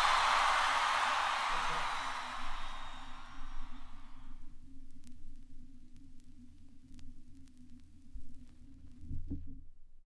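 A turntable hums low and steady.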